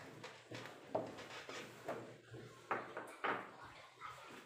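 A chess piece clicks down on a wooden board.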